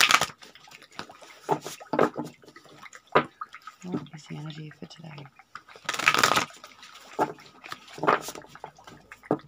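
Cards slap softly onto a cloth.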